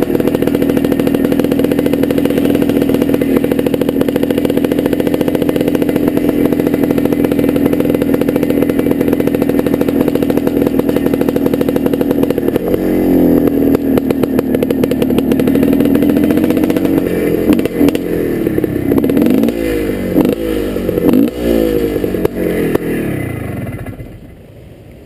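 A dirt bike engine hums steadily close by, then revs up and down before cutting out.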